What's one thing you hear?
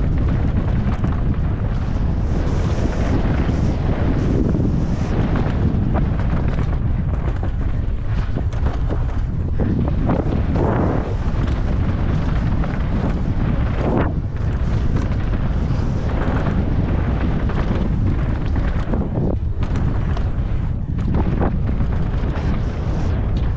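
Wind rumbles hard across a microphone outdoors.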